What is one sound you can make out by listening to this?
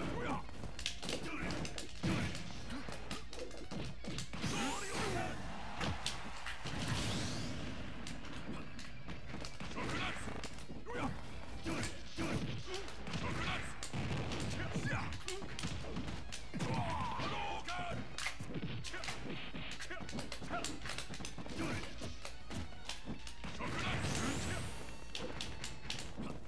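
Punches, kicks and blasts from a fighting game hit in quick bursts.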